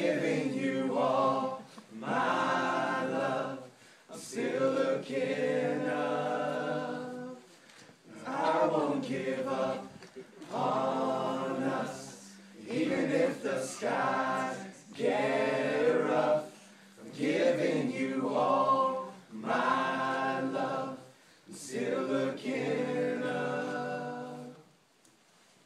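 A group of young men sing loudly together nearby, in short phrases with brief pauses.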